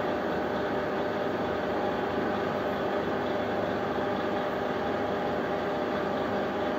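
A lathe motor hums and whirs steadily.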